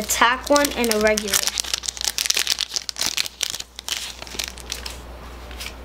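A foil wrapper crinkles and tears.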